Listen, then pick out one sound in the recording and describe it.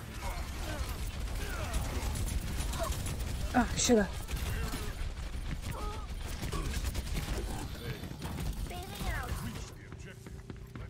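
Rapid gunfire and laser blasts crackle from a video game.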